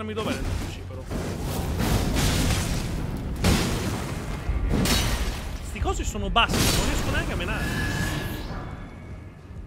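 Fiery sword strikes whoosh and crash in a game.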